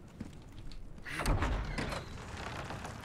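Heavy wooden doors creak open.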